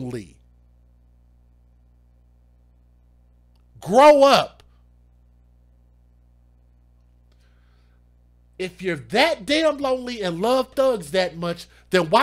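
A man speaks with animation into a close microphone, with long pauses.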